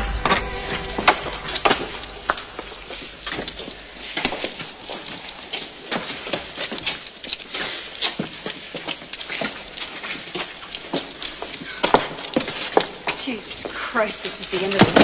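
Footsteps echo on a stone floor in a large hall.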